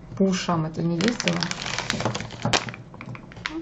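Wrapped candies tumble out onto a hard surface.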